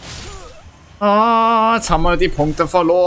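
A young man speaks loudly and with animation into a microphone.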